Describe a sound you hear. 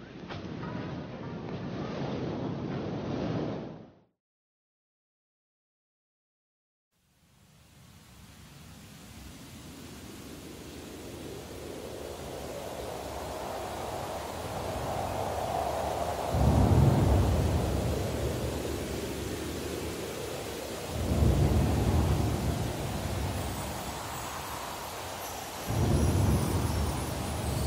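A trumpet plays a melody.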